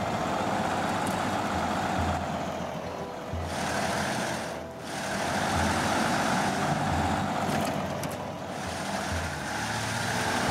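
A heavy truck engine rumbles and strains as it climbs over rocks.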